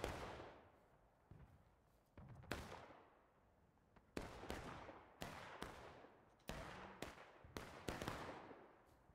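Musket shots crack one after another and echo out across open ground.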